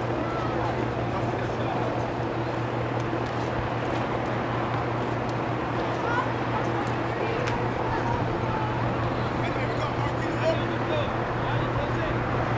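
Young players shout to each other far off across an open field.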